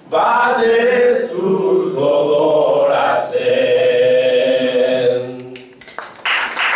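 A man sings loudly through a microphone.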